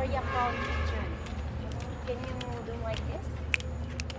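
A young child talks excitedly close by.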